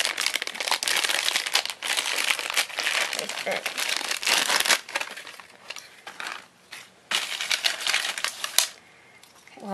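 A plastic wrapper crinkles and rustles loudly close by.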